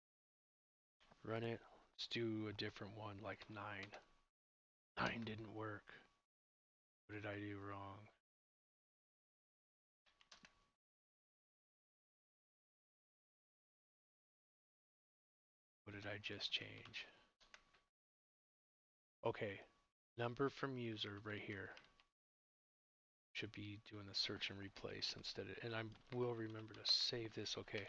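A man talks calmly through a close microphone, in bursts with pauses.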